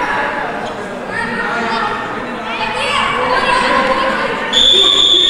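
A crowd of spectators cheers and chatters in an echoing indoor hall.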